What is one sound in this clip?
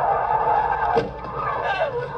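A car slams against a concrete wall.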